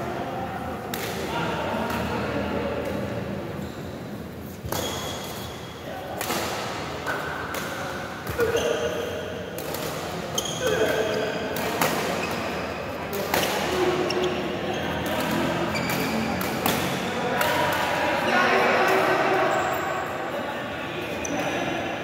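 Shoes squeak and shuffle on a hard court.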